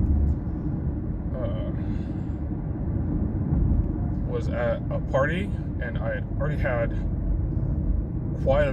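A car drives on an asphalt road, heard from inside.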